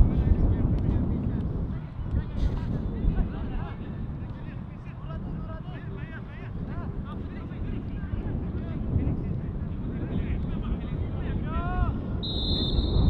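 Young players shout to each other in the distance.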